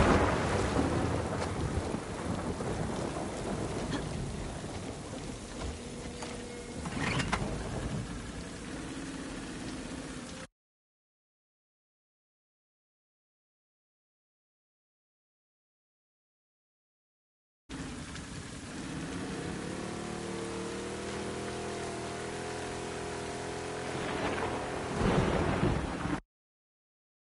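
Water splashes and laps around a drifting wooden boat.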